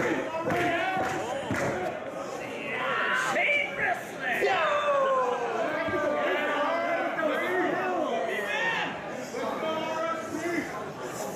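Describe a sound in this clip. A crowd of men and women shouts and cheers loudly in an echoing hall.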